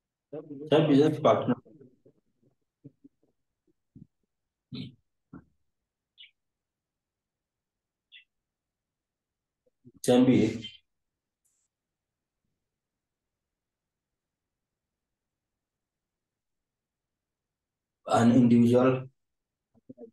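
A young man speaks in short phrases over an online call, with long pauses between them.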